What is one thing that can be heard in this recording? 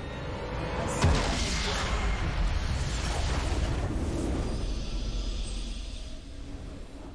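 A game's nexus explodes with a loud crackling blast.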